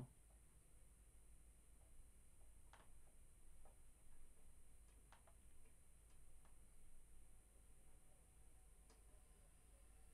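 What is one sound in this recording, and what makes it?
Keys click softly on a laptop keyboard.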